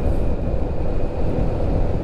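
A motorbike engine rumbles as it rides past.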